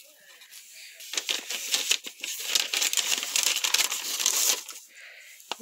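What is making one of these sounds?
Paper crinkles under a hand.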